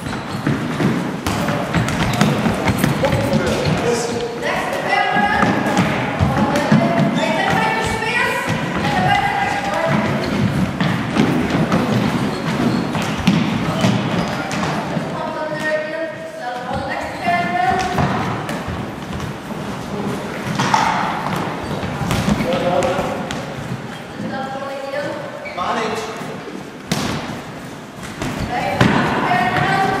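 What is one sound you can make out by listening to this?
Shoes squeak and patter on a hard floor.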